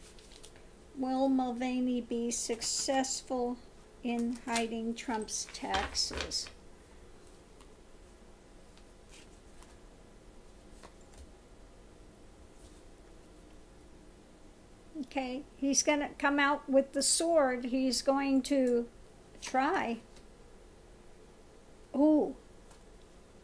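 A middle-aged woman speaks calmly and close to a microphone, in bursts with pauses.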